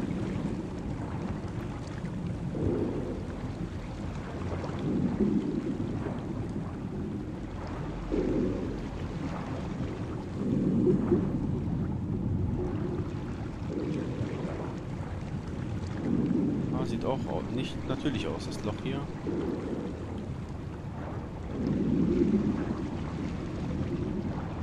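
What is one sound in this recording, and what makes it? Water rushes and swirls in low, muffled swells, as if heard underwater.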